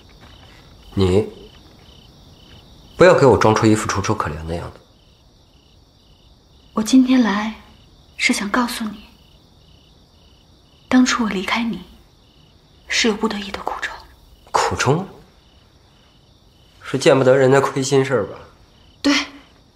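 A young man speaks calmly and firmly, close by.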